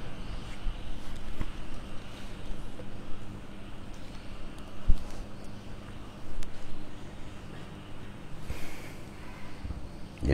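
Paper pages rustle as a man turns them.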